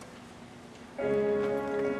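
Music plays over loudspeakers in a large hall.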